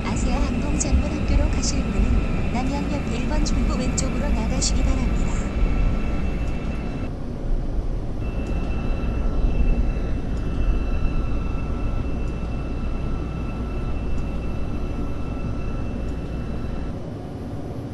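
A train rumbles steadily along the tracks, then slows and quiets.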